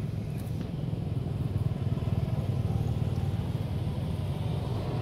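A motorbike engine hums in the distance as it passes.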